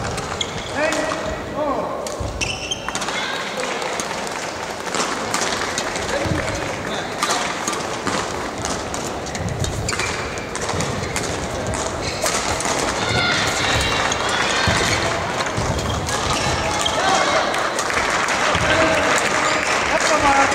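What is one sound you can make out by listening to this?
Shoes squeak on the court floor.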